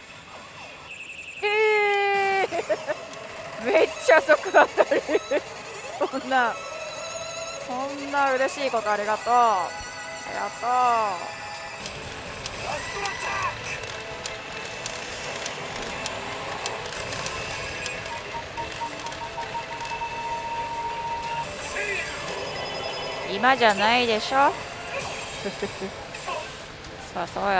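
A pachinko machine plays loud electronic music and chiming sound effects.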